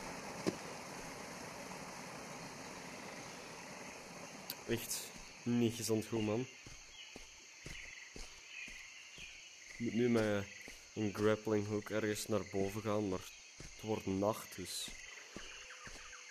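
Footsteps crunch on soft dirt and leaves.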